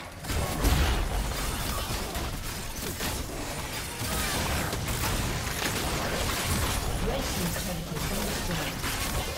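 Game spell effects burst and clash in quick succession.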